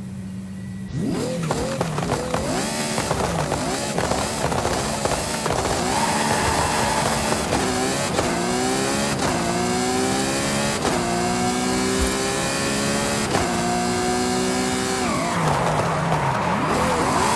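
A sports car engine revs hard and roars, climbing in pitch through repeated gear changes.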